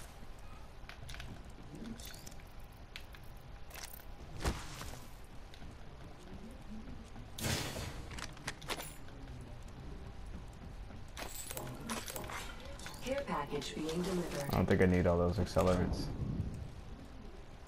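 Footsteps thud across a metal floor.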